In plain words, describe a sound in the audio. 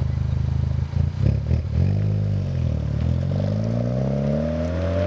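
A car accelerates away with a rising exhaust roar.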